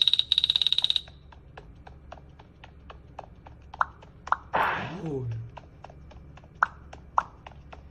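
A mobile game plays a fast run of short ticking pops.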